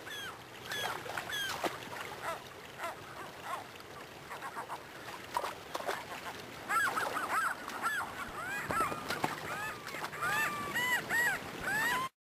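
Gulls call with sharp, repeated cries.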